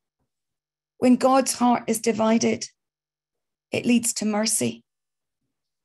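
A middle-aged woman speaks calmly into a microphone over an online call.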